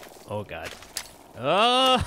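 A ray gun fires with an electric zap.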